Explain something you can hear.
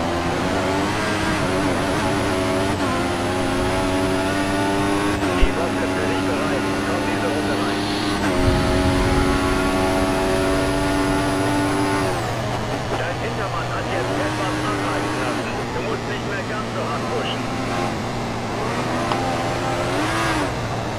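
A racing car engine screams at high revs, rising through the gears and dropping as it slows for a corner.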